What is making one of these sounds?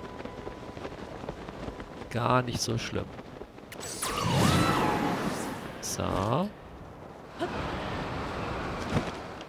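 Wind rushes steadily past a glider.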